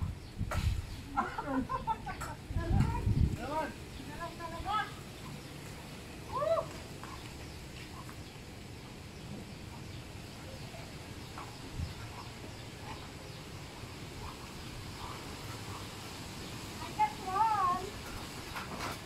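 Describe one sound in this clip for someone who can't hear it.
A young woman calls out and talks with animation nearby.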